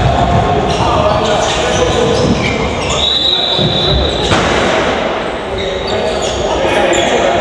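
A ball thumps as it bounces on a hard floor.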